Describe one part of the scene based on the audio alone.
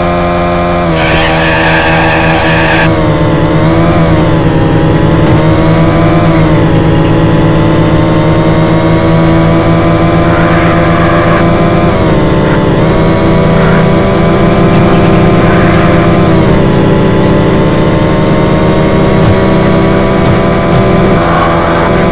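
A car engine roars, revving up and dropping briefly with each gear change.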